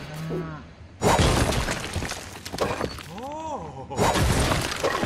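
A pickaxe chips at stone with sharp crunching blows.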